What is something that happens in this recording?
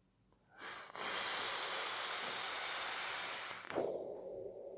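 A man draws hard on a vape, making a loud crackling hiss.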